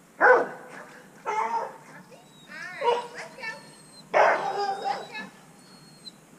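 A dog barks close by.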